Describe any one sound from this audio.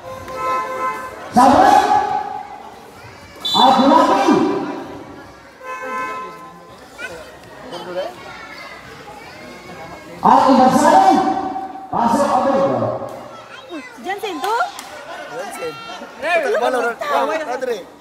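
Men call out to each other on the court.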